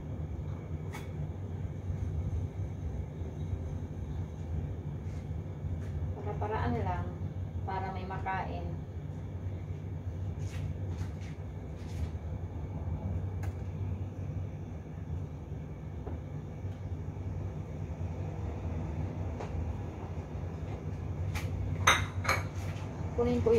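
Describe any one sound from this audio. Dishes clink softly.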